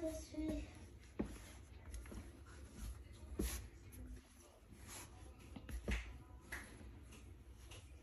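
Hands knead and slap soft dough on a countertop.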